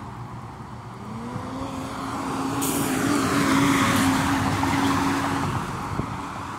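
Traffic passes on a city street.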